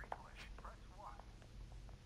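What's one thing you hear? A finger taps on a phone's touchscreen.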